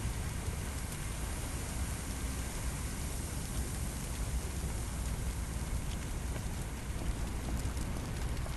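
Flames crackle and roar.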